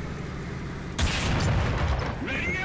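A tank cannon fires with a sharp, heavy blast.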